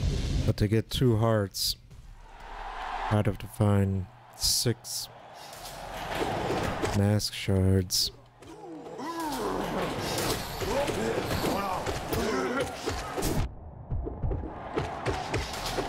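Sharp sword slashes and hits ring out in a fast fight.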